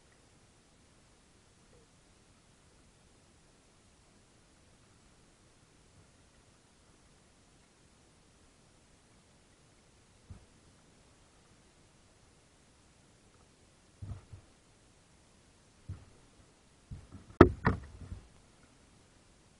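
Water laps softly against a kayak's hull.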